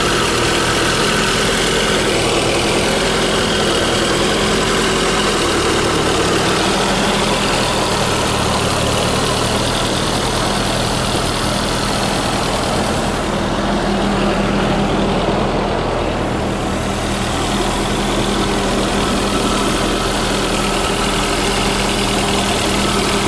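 A car's turbocharged four-cylinder engine runs.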